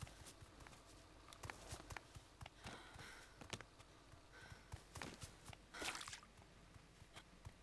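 Footsteps crunch over grass and gravel at a steady walking pace.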